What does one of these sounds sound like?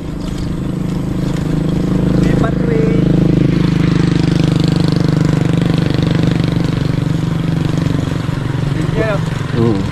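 A motorcycle engine hums and grows louder.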